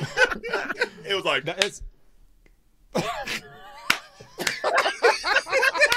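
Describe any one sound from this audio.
A man laughs loudly over an online call.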